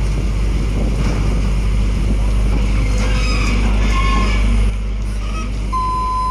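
A diesel engine idles and rumbles close by.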